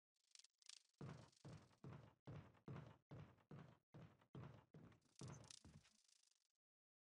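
Footsteps thud slowly and steadily on a creaking wooden floor.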